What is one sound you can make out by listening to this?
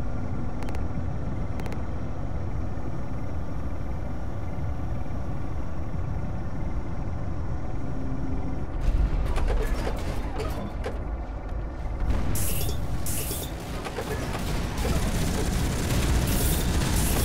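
A heavy machine rumbles low and steadily.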